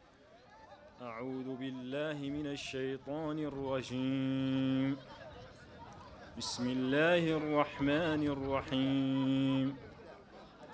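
A young man chants in long, drawn-out notes through loudspeakers.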